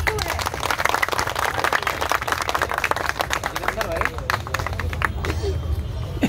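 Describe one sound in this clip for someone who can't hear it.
A crowd claps rapidly nearby.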